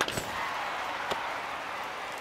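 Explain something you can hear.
A baseball smacks into a glove.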